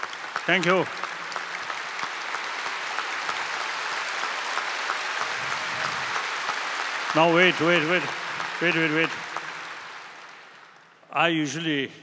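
An audience applauds in a large hall and the applause fades.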